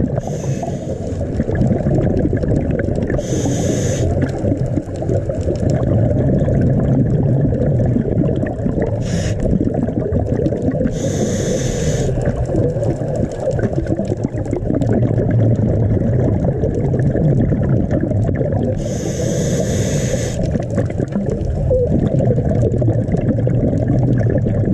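Water rumbles and churns steadily underwater.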